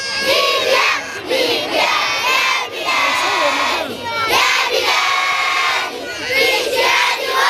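A large group of children chant and shout together loudly outdoors.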